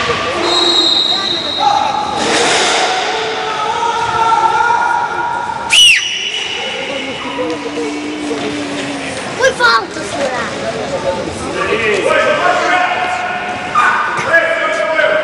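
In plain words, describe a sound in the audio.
Players shout and call out across a large echoing hall.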